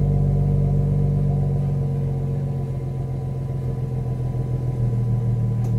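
A car engine idles with a deep, steady rumble from the exhaust close by.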